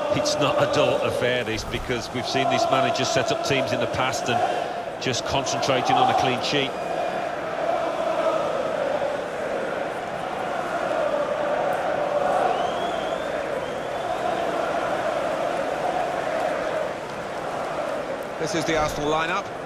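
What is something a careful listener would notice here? A large stadium crowd cheers and chants steadily.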